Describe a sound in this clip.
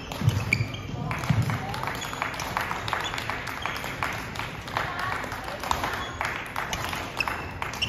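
Shoes squeak sharply on a hard court floor.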